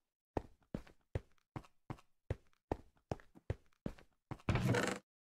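Footsteps tap steadily across a stone floor.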